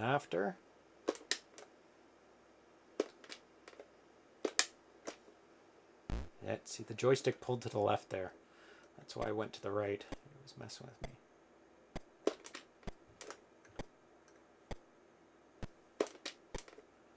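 Short electronic game blips sound.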